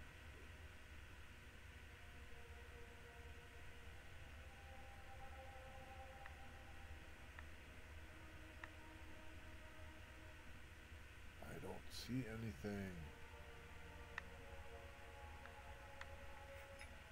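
A metal chain clinks softly.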